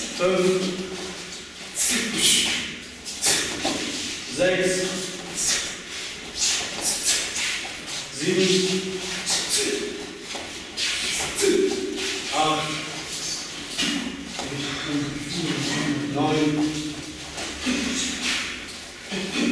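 A young man calls out commands loudly in an echoing room.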